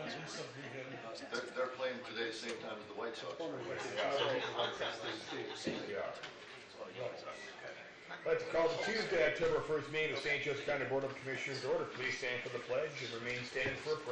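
A man speaks steadily through a microphone in a room with a slight echo.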